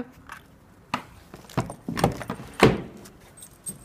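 Hard objects knock against one another and onto a surface.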